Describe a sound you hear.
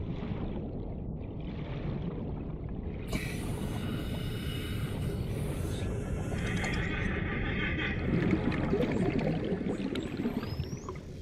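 Water rumbles and swirls in a steady low murmur, as if heard underwater.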